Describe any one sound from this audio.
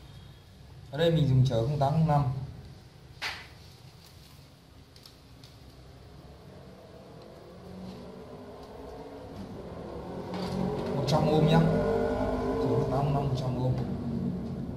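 Hands rustle and tap small parts on a wooden table.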